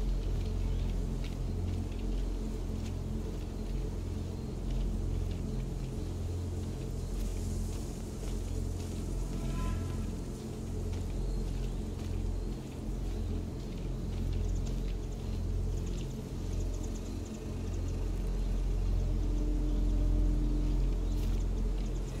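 Footsteps crunch softly on grass and dirt.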